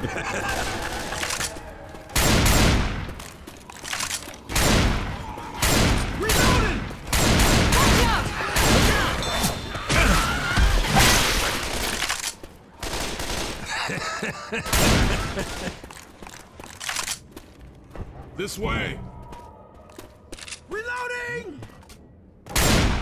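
Gunshots fire in loud, repeated bursts.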